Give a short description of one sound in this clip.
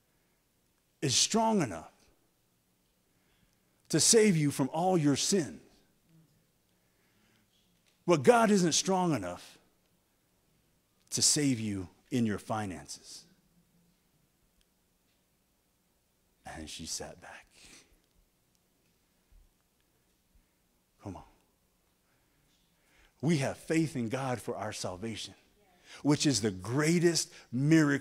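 A man preaches through a microphone in phrases with long pauses, his voice echoing in a large hall.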